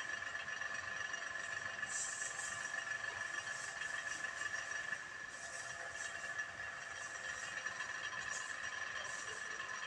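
Dry straw rustles and crackles.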